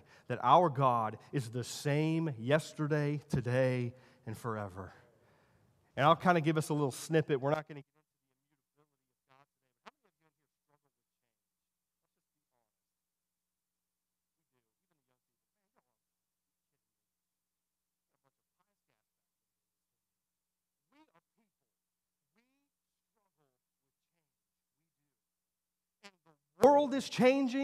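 A man speaks with animation through a microphone and loudspeakers in a large room.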